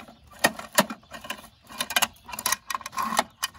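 A small plastic bin rattles and knocks as it is tipped.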